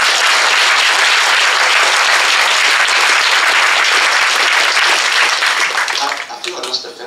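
A large crowd applauds loudly in a hall, then dies down.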